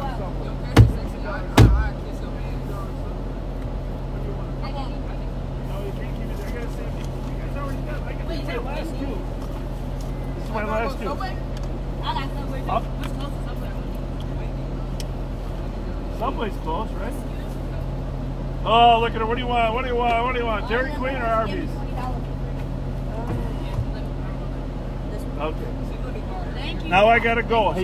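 A car engine idles steadily close by.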